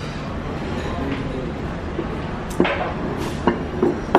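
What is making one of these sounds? A plate clinks down onto a hard table.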